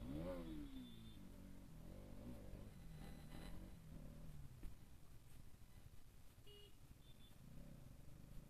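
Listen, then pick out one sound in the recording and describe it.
Horns beep briefly in the street.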